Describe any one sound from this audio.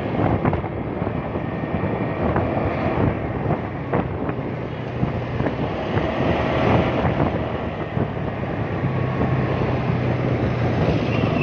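Wind rushes past outdoors.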